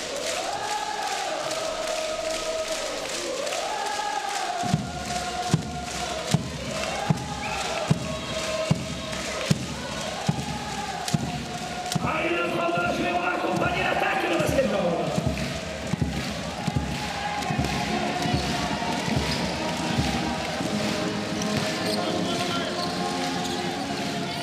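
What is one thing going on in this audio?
A large crowd cheers and chants in a big echoing hall.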